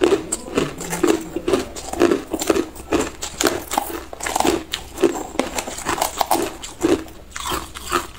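Ice cubes clink and rattle in a plastic box.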